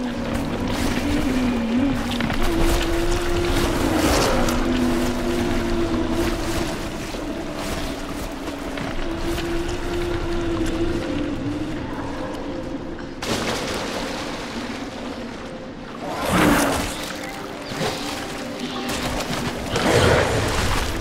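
Water splashes as a man wades through it.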